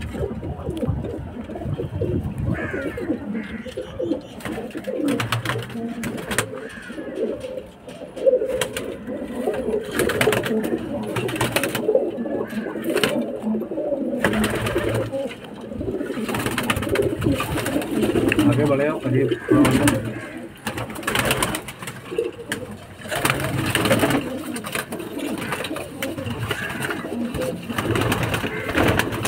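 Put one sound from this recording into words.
Many pigeons coo and warble throughout.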